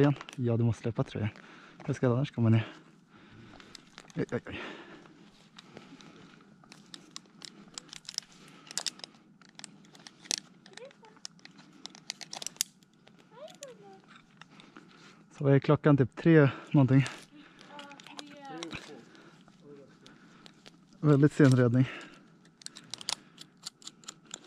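A plastic mesh bag crinkles as hands handle it.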